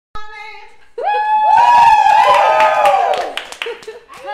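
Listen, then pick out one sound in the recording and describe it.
A group of women cheers and whoops.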